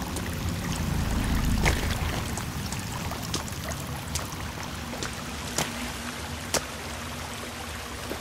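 Footsteps scrape and crunch on rocky ground.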